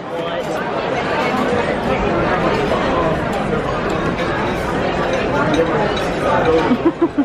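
Many people chatter in a crowded, echoing dining room.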